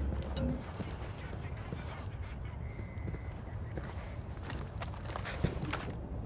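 Boots thud on a hard floor as a person walks.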